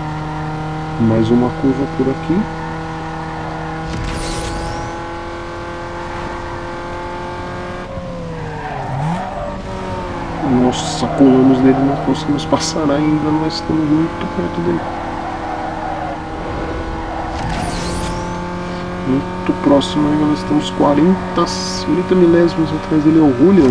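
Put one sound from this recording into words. Tyres squeal as a car slides through corners.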